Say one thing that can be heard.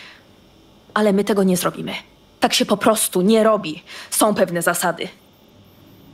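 A woman speaks calmly and firmly.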